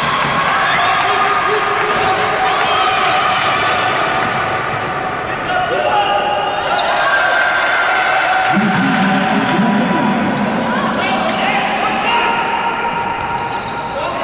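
A basketball bounces on the court with dull thumps.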